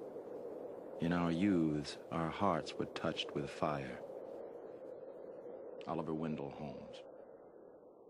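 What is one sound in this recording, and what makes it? A man speaks calmly outdoors, a little distance away.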